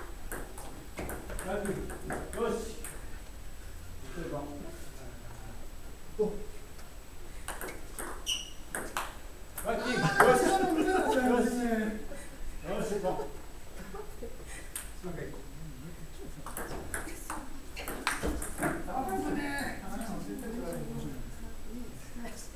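Young men talk and laugh nearby.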